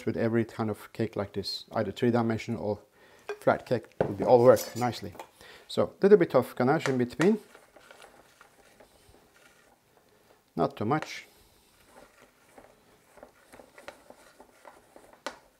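A spatula scrapes and spreads thick frosting over a cake.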